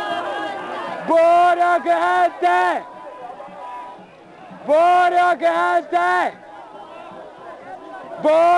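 A crowd murmurs and calls out in the background between chants.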